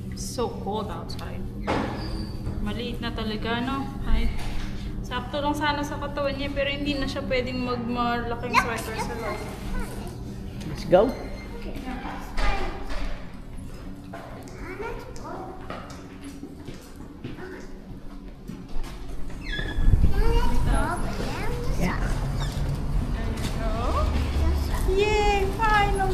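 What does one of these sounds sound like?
A young woman talks softly and playfully close by.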